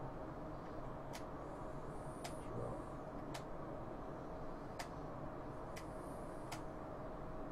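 Soft menu clicks tick now and then.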